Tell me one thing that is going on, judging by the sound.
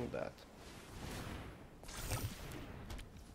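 A magical whoosh sweeps past.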